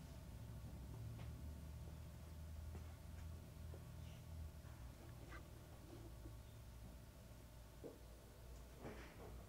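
Wet laundry tumbles and thumps softly inside a washing machine.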